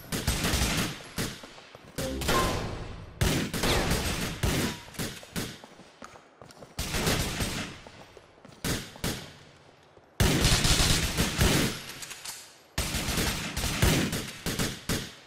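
Gunshots crack in rapid bursts and echo through a large hall.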